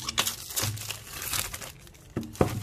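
A plastic bag crinkles in hands.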